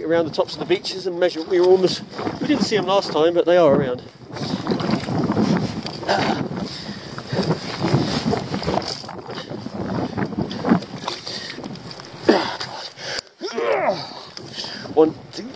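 Water sloshes around boots wading through shallow water.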